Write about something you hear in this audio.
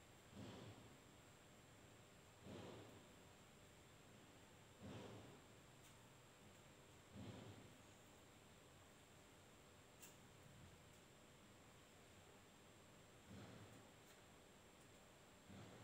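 Cloth rustles in short bursts.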